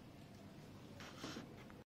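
A book is set down on a hard floor with a soft thud.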